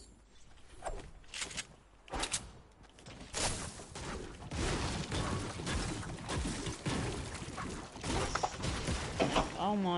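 Gunshots crack in short bursts in a video game.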